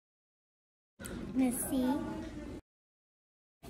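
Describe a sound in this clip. A young girl talks softly close by.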